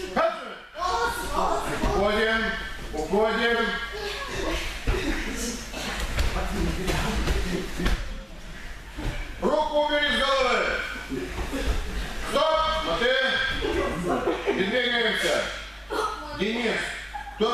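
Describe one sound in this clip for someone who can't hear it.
Bodies scuffle and slide on gym mats.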